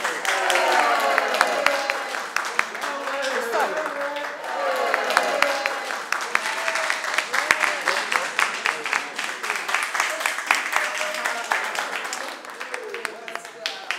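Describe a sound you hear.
A crowd cheers and shouts with excitement.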